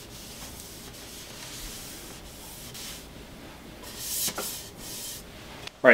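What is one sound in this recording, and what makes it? A cloth rubs over a bike frame.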